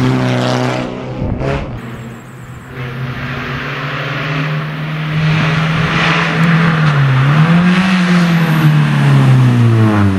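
A rally car engine revs hard and grows louder as the car climbs closer.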